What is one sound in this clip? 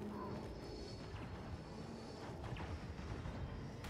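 Laser blasters fire in bursts in the distance.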